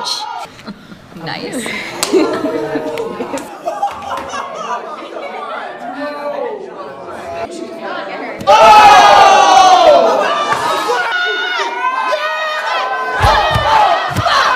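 Young women talk and exclaim with excitement nearby.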